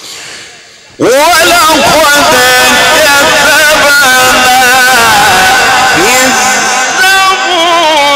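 A man chants loudly through a microphone with a strong echo.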